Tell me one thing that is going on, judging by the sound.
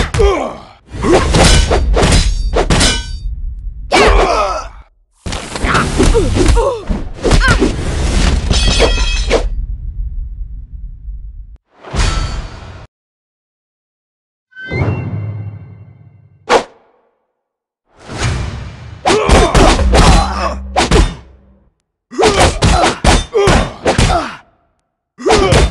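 Metal blades clash and strike with sharp ringing hits.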